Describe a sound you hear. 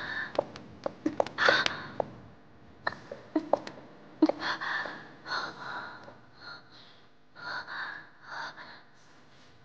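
A young woman pants and gasps nearby.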